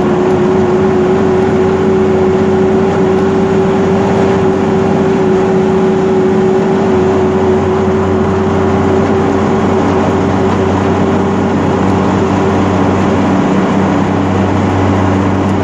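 An engine hums steadily from inside a moving vehicle.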